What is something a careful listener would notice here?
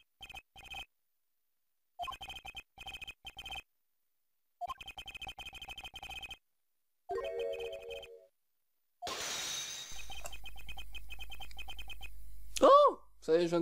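Short electronic beeps tick rapidly in quick bursts.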